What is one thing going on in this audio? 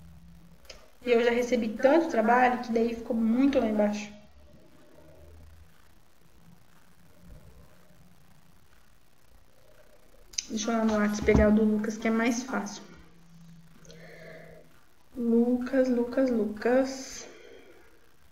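A young woman speaks calmly into a microphone, close by, in short bursts with pauses.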